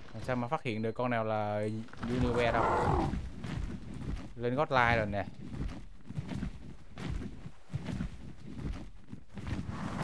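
Leathery wings flap with whooshing beats.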